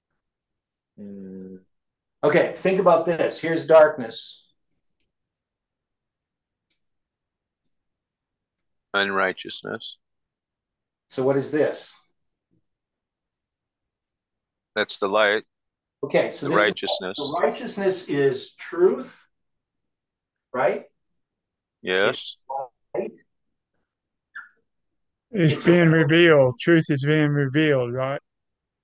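An elderly man speaks calmly, close by, in short bursts with pauses.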